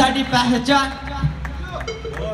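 A young man speaks loudly into a microphone over loudspeakers.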